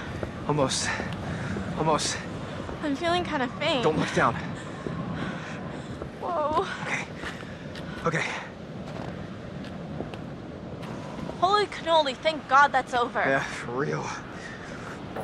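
A young man speaks in a strained, hushed voice.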